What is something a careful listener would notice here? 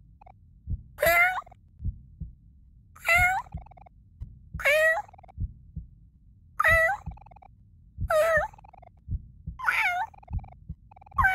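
A cartoon cat meows again and again in short, rising cries.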